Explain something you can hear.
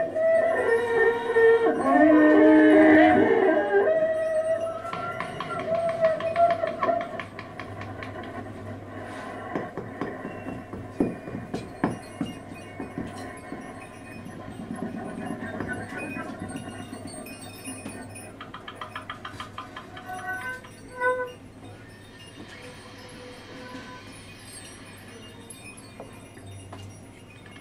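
A double bass is plucked.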